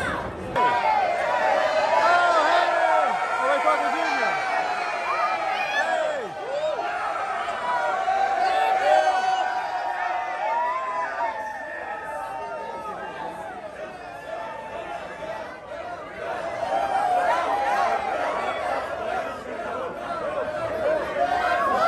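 Young women shriek with excitement close by.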